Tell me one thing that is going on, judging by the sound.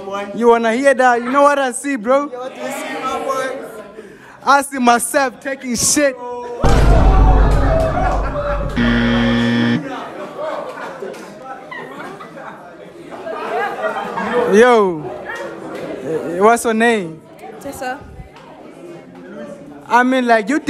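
A group of young women laugh and cheer nearby.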